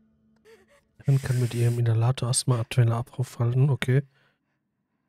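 A young woman breathes hard and wheezes loudly.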